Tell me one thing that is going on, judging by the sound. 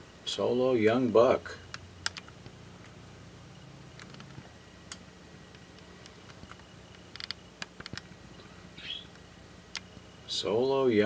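A deer crunches and nibbles food from the ground close by.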